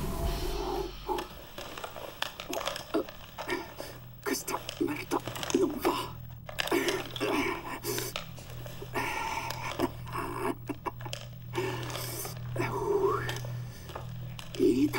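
A man speaks close up in a shaky, strained voice.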